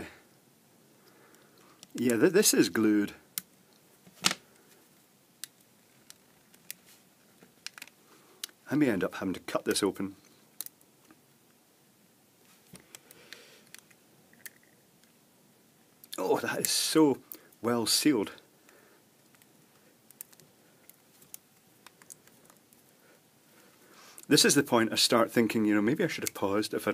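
Plastic clicks and creaks softly as hands turn and squeeze a light bulb.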